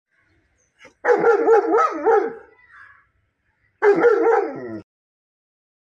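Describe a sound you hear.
A large dog barks loudly nearby.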